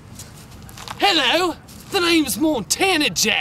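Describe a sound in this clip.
A young man shouts with animation close by, outdoors.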